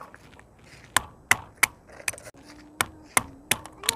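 A stone knocks sharply on walnuts against a flat rock, again and again.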